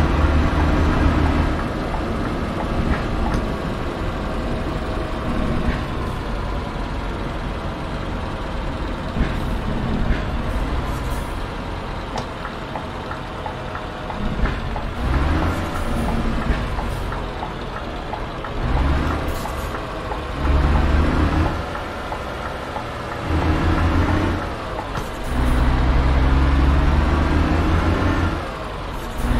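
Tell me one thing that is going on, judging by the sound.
A truck engine rumbles steadily, rising and falling as it speeds up and slows down.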